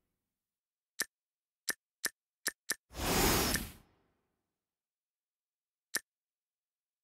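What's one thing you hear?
Short game chimes click one after another.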